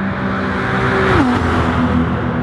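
A racing car engine drops in pitch as it passes.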